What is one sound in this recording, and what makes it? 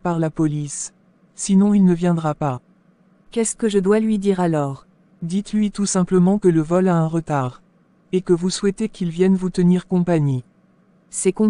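A woman speaks firmly and clearly, close to the microphone.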